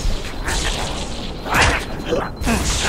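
A plasma grenade bursts with a loud blast.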